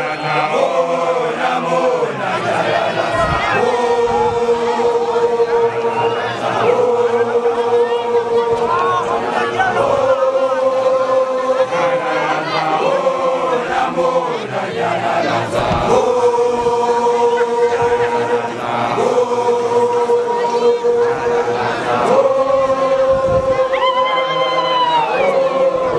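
A large group of young men sings together in long, held notes.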